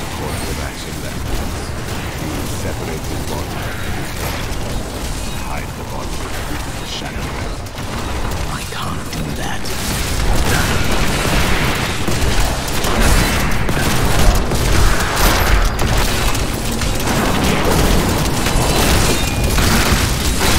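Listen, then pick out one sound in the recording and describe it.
Spells crackle and blast against monsters in a fast fight.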